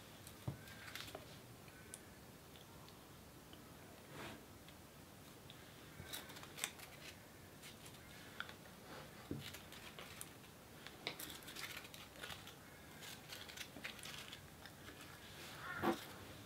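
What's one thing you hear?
Crepe paper crinkles and rustles softly close up under fingers.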